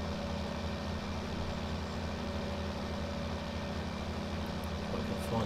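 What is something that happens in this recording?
A tractor engine rumbles steadily from inside the cab.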